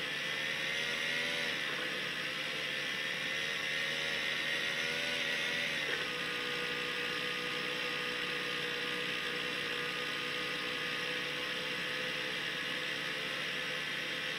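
A video game's motorbike engine hums steadily through a small phone speaker, shifting pitch once.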